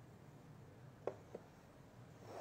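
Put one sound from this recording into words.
Wooden pieces knock softly together.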